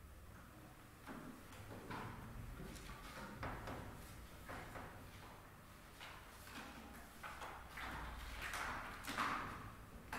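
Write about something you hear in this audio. Sheets of paper rustle and crackle.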